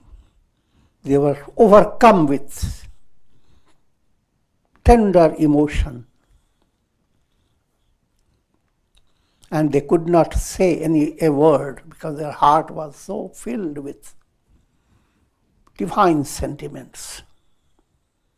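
An elderly man reads aloud calmly through a close microphone, in short phrases with pauses.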